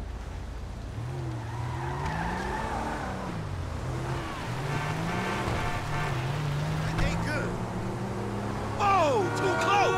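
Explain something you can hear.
A car engine hums and revs as the car drives along a road.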